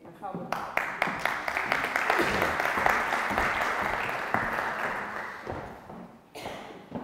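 An audience applauds in a large hall, then the clapping dies away.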